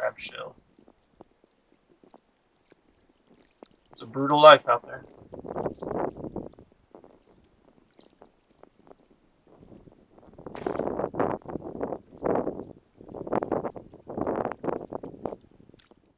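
Shallow water laps gently.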